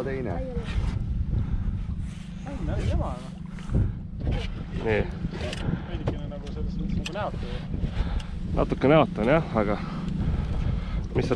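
Men talk excitedly close by, outdoors in wind.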